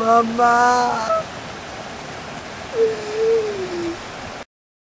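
A boy moans and sobs close by.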